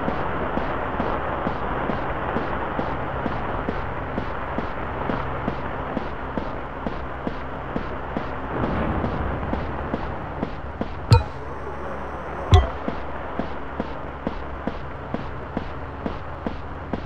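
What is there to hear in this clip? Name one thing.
A cartoon bear's footsteps patter steadily on soft ground.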